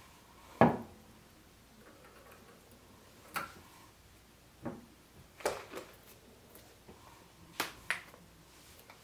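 Containers knock and tap on a countertop.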